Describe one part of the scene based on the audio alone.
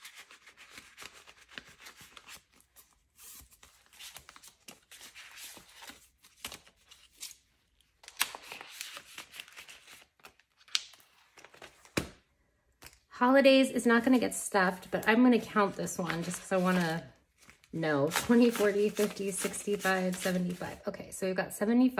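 Paper banknotes rustle close by.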